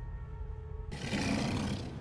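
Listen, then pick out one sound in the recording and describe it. A large beast roars loudly.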